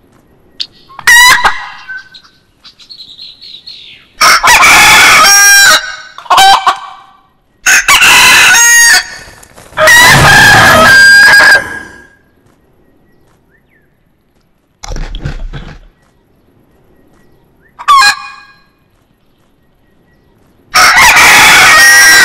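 Chickens squawk and cluck loudly in short bursts.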